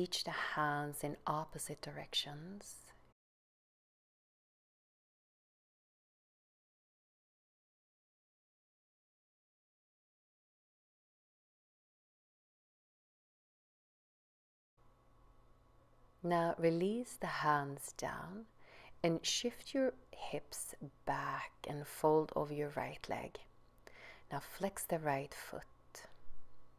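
A woman speaks calmly and steadily, as if giving instructions.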